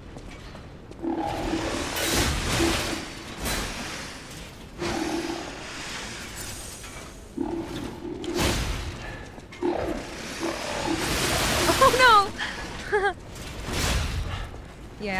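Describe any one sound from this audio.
Metal weapons clang and crash in a fight.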